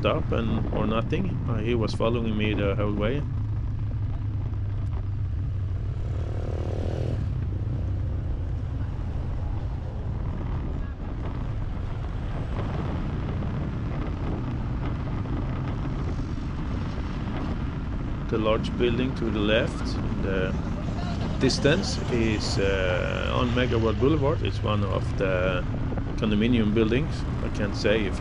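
Traffic rumbles steadily along a street nearby.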